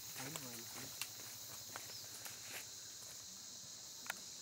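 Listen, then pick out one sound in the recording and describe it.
Dry twigs snap and crackle underfoot.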